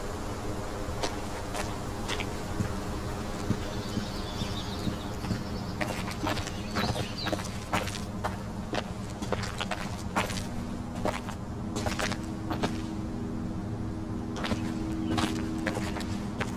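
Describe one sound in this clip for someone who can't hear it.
Footsteps crunch on leaves and rocky ground.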